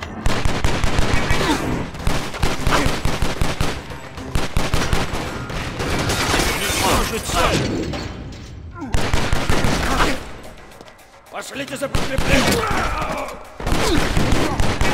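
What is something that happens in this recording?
Pistol shots ring out rapidly, echoing in a large hall.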